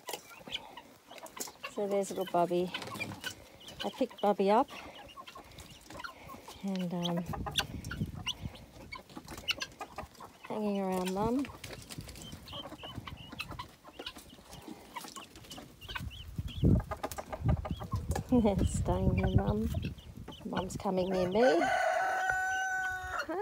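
Birds peck and scratch at dry dirt.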